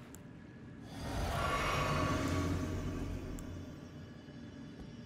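A magical shimmer swells and fades.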